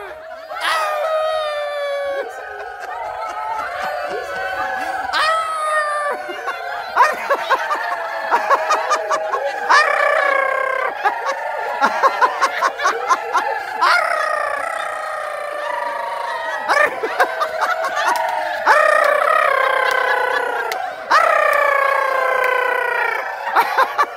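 A group of elderly women sing loudly together.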